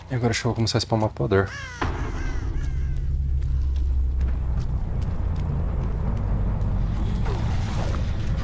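Heavy footsteps thud steadily on soft ground.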